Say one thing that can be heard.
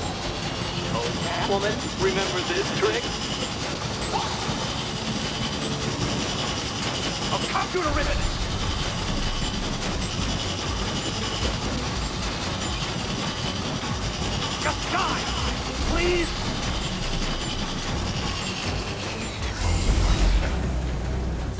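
A laser barrier hums steadily.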